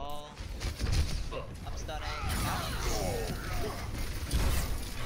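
Video game weapons fire in quick bursts with thumping impacts.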